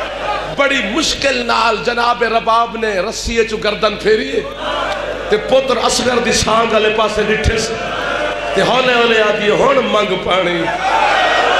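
A young man speaks forcefully into a microphone, heard through loudspeakers.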